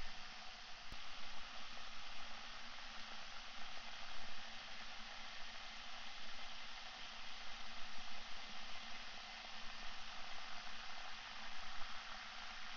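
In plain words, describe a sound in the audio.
Liquid fizzes and crackles softly in a glass.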